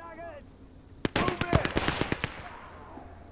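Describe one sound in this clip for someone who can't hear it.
Rapid gunfire crackles in short bursts.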